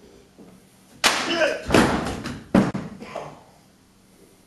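A man shouts loudly with animation in a large echoing hall.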